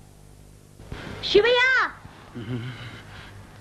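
A man cries out in pain close by.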